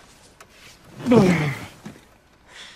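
A body thumps heavily onto a soft couch.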